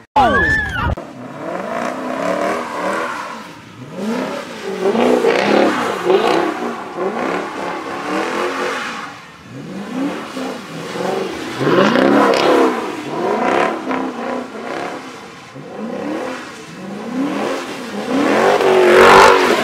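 A car engine roars and revs hard.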